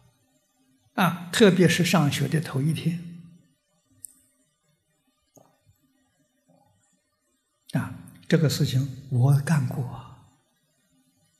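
An elderly man speaks calmly into a microphone, in pauses.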